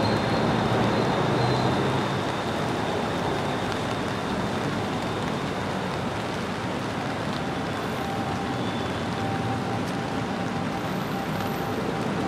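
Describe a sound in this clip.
Traffic rumbles by on a wet road.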